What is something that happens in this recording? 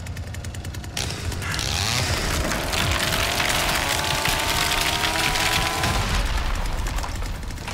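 Glass shatters and debris showers down loudly.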